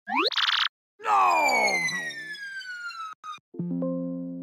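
A falling whistle drops in pitch as a flying machine plunges.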